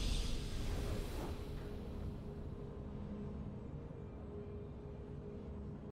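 A triumphant game victory chime rings out and slowly fades.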